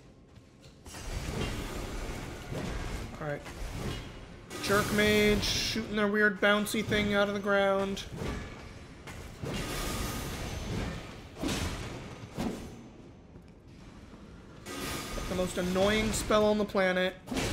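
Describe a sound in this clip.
Video game combat sounds clash and whoosh.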